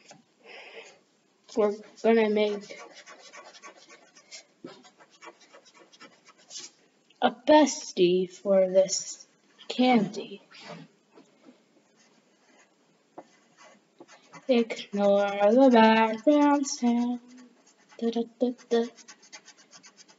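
A pencil scratches in short shading strokes on paper.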